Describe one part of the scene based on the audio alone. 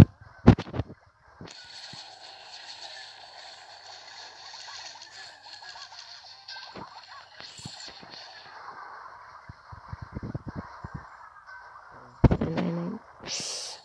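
Cartoon battle sound effects clash and crackle.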